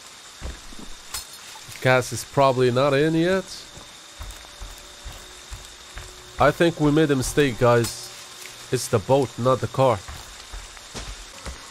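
Heavy footsteps tread over dry leaves and gravel.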